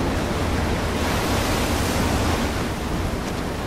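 Water gushes and splashes nearby.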